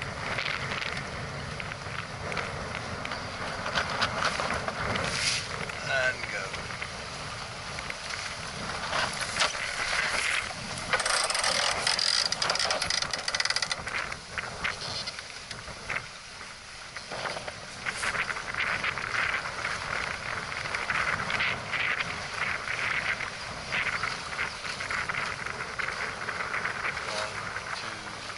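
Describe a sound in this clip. Water rushes and splashes against a sailing boat's hull.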